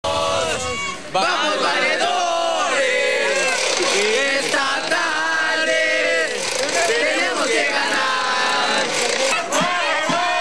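A crowd of boys cheers and shouts loudly.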